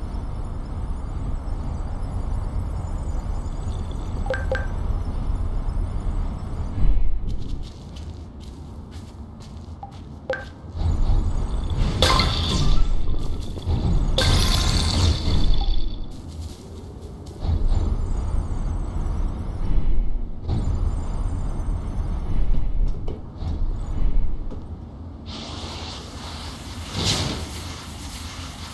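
Rushing wind whooshes past in strong gusts.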